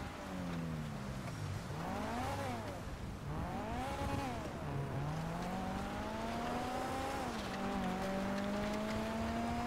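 Tyres crunch over snow.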